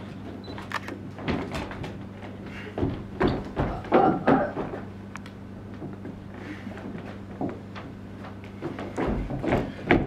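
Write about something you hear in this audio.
Footsteps thud on a wooden stage floor.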